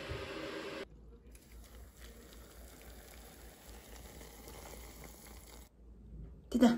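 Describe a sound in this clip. Hot water pours steadily into a cup.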